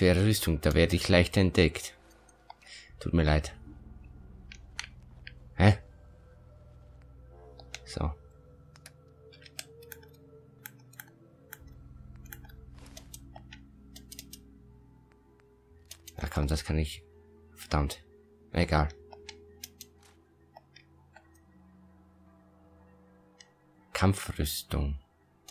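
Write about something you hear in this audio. Soft electronic clicks tick as menu items are scrolled through.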